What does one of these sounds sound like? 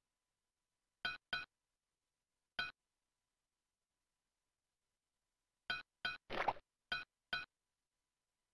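Short electronic chimes ring out in quick bursts.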